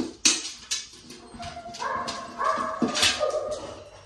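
A dog noses and clanks a metal bowl.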